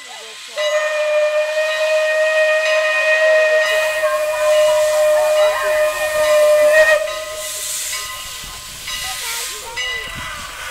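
Steam hisses loudly from a locomotive in bursts.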